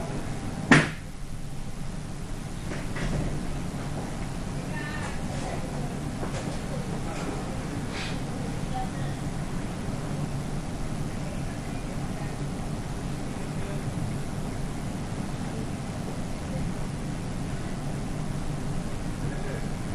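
A group of people murmurs and chats in the background.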